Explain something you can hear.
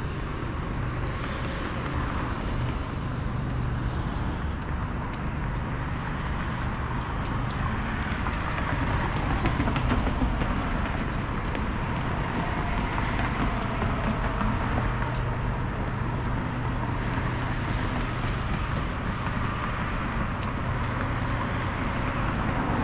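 Traffic hums steadily nearby outdoors.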